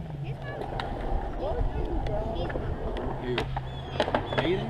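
A skateboard rolls and grinds on concrete.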